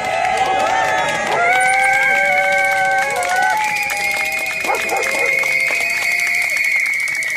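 A crowd of protesters chants and murmurs outdoors.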